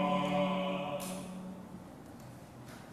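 A small group sings together, then stops.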